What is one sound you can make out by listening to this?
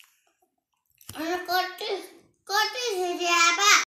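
A young boy sings loudly close by.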